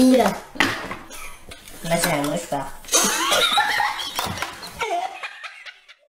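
Cardboard boxes rustle and flap.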